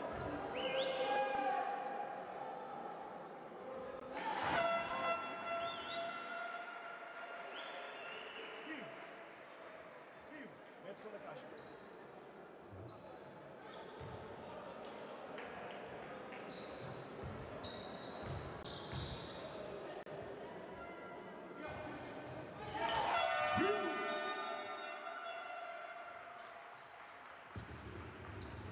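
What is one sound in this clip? A crowd murmurs and cheers in a large echoing hall.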